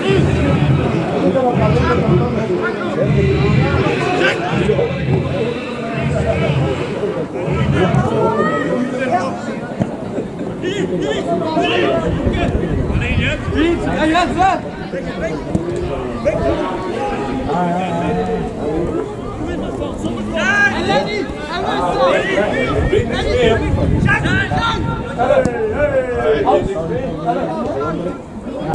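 Young players shout and call to each other from a distance, outdoors.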